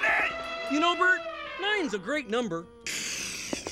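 A man sings in a high, playful cartoonish voice.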